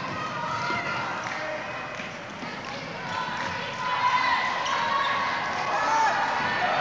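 A small crowd murmurs and calls out in a large echoing arena.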